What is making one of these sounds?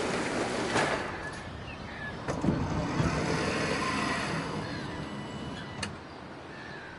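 A bus door hisses and thumps shut.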